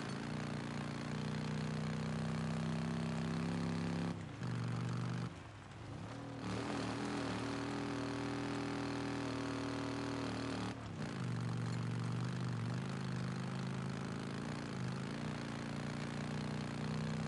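A motorcycle engine roars steadily, its pitch rising and falling as it shifts gears.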